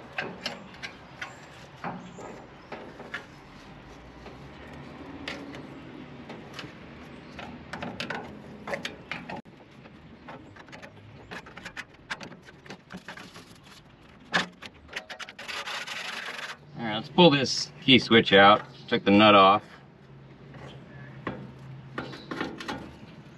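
Small clicks and taps of hands working on wiring and metal.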